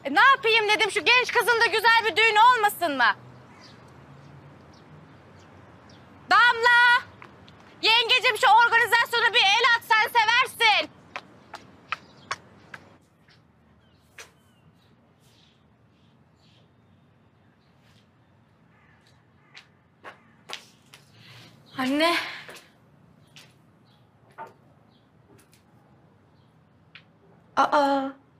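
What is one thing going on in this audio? A young woman speaks loudly with animation nearby.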